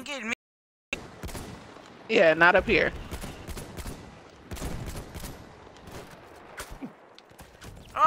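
A machine gun fires rapid bursts of shots.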